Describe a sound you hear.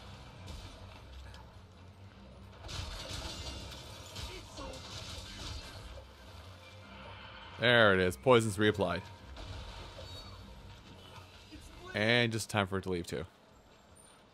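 Weapon strikes and magic bursts crash in a game battle.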